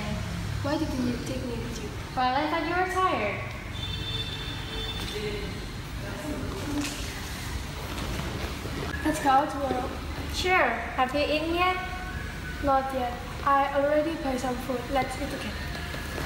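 A young woman in a cap talks animatedly, close by.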